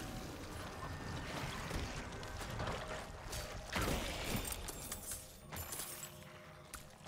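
Game combat sounds of blows and magic effects crash and clatter.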